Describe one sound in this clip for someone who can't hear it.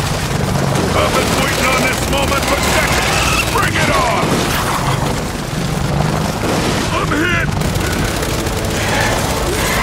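A large creature shrieks.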